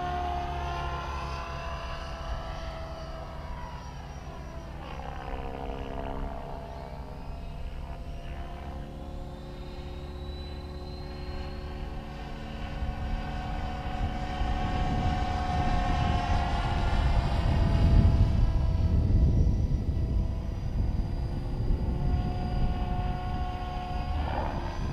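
A model plane's motor whines steadily, its pitch rising and falling.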